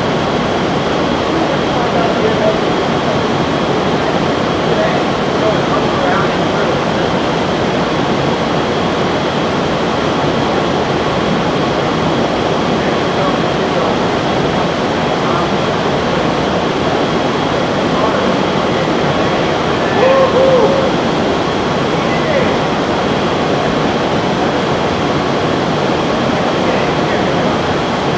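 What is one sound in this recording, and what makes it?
Air rushes steadily past with a loud, even roar.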